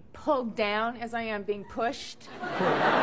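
A young woman speaks casually.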